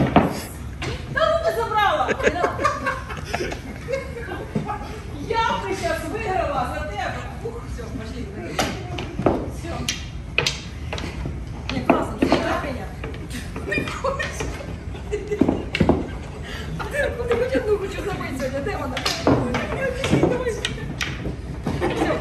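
Women talk and laugh nearby.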